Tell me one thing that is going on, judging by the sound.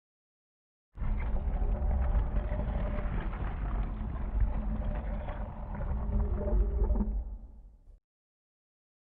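A heavy stone statue rumbles and grinds as it slowly turns.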